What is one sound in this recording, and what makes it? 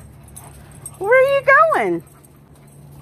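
A dog howls loudly, rising and falling in pitch.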